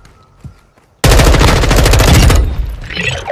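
A rifle fires a rapid burst of shots at close range.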